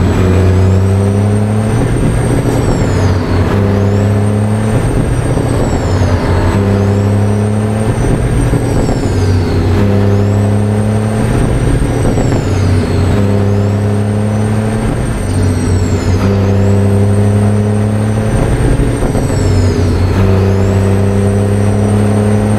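A heavy truck engine rumbles loudly, revving and dropping back with each gear change.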